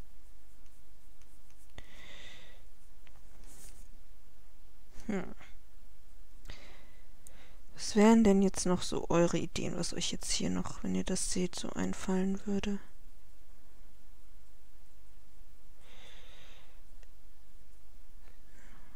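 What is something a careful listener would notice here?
A marker pen scratches softly on paper.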